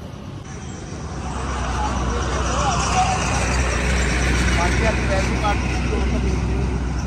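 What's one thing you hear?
Several people talk at the same time outdoors, some way off.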